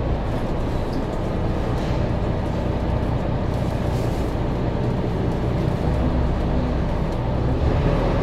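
A bus engine idles with a steady low rumble nearby.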